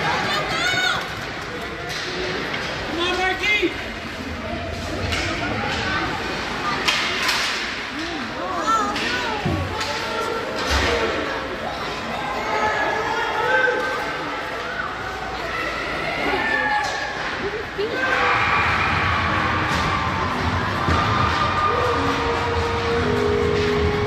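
Skate blades scrape and hiss on ice in a large echoing rink.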